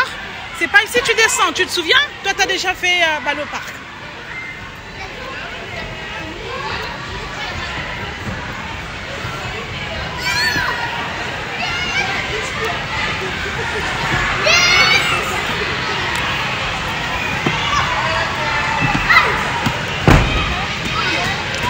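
Young children shout and chatter nearby in an echoing room.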